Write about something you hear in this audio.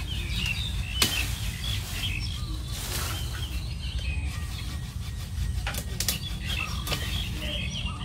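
Pruning shears snip branches now and then.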